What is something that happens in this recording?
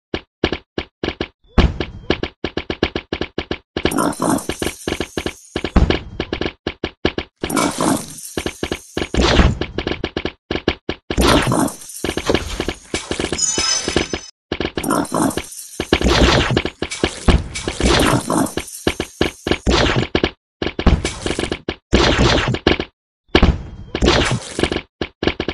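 Game hits land with quick thuds and bursts.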